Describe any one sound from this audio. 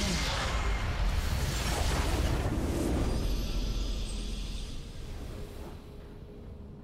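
A loud rumbling explosion booms and slowly fades.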